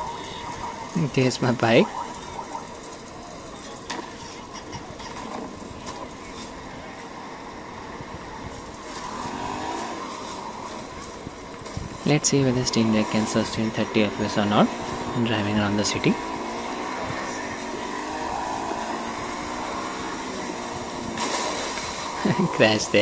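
A motorcycle engine revs and hums through small speakers.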